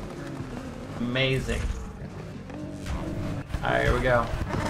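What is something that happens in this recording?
A young man speaks with animation through a close microphone.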